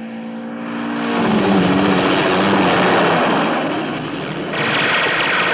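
A helicopter's rotor chops loudly overhead.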